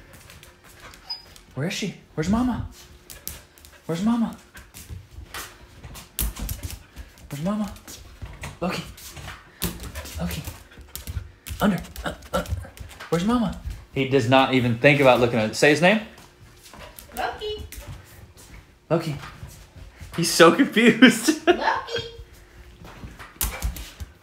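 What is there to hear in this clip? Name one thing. A dog's paws patter and thump on a hard floor.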